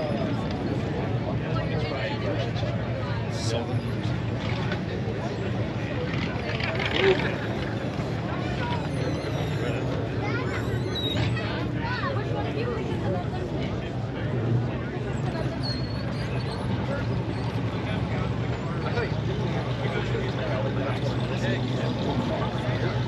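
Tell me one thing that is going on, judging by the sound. A crowd of men and women chatters outdoors at a distance.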